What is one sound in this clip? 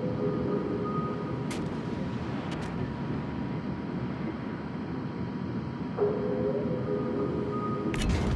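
Water rushes and splashes against a moving ship's hull.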